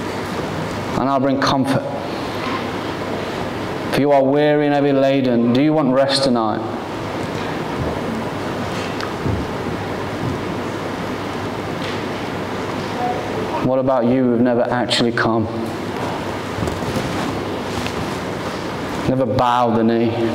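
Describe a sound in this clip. A man speaks calmly in a large echoing hall, pausing between phrases.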